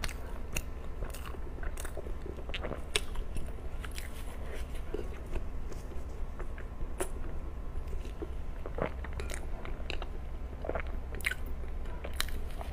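A young woman chews soft food wetly and close to a microphone.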